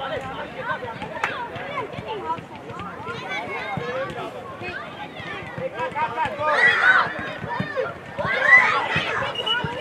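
Many children shout and call out excitedly outdoors.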